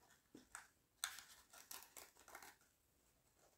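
Paper rustles and crinkles softly close by.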